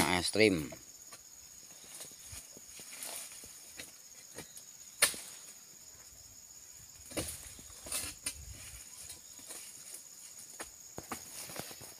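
A man pushes through undergrowth with leaves rustling.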